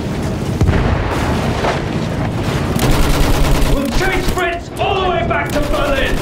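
Rifles fire in rapid shots.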